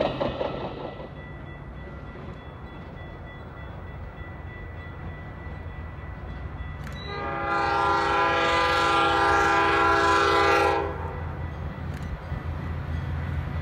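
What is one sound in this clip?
An approaching train rumbles in the distance.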